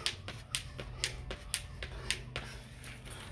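A jump rope slaps quickly and rhythmically on concrete.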